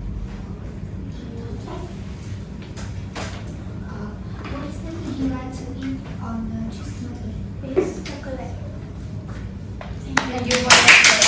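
A young girl speaks calmly nearby, reading out.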